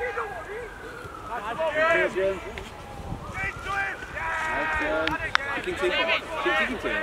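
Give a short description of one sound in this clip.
A man shouts loudly close by.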